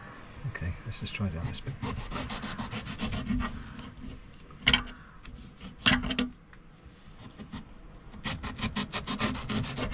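A knife slices through soft fruit.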